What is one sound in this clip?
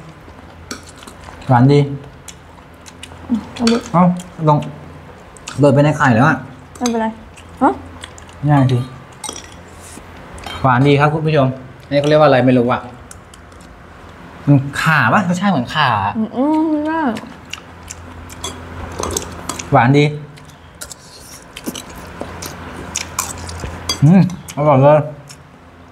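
Spoons clink against bowls.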